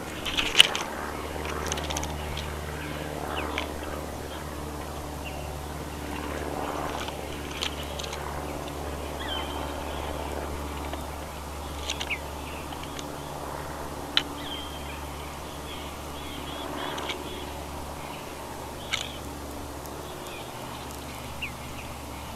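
Birds chirp in short, sharp calls from nearby trees.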